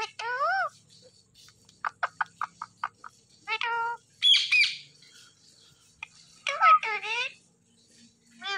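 Parrots chirp and squawk close by.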